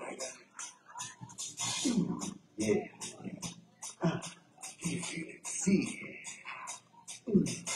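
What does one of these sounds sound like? A man sings through a microphone and loudspeakers.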